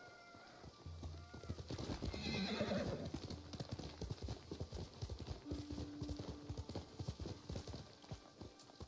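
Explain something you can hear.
Horse hooves thud rapidly at a gallop.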